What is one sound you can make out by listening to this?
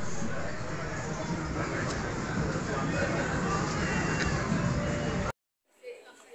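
The murmur of a busy street fills the air outdoors.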